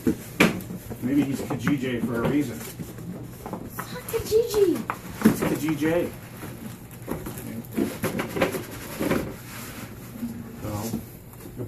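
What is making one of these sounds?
Cardboard scrapes and rustles as a box is pulled open.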